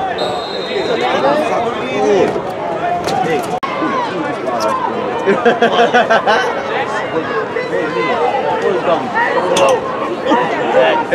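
A crowd of spectators shouts and cheers close by, outdoors.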